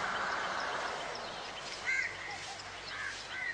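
A van's engine hums as it drives away in the distance.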